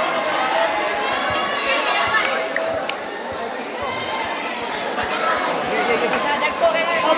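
A large crowd chatters and shouts in an echoing hall.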